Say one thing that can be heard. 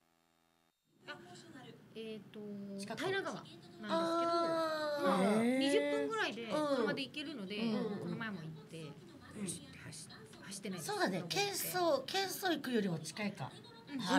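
A woman talks with animation into a microphone, close by.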